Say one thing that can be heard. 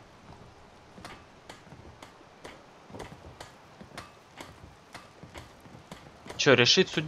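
Footsteps tread steadily on a hard wooden walkway.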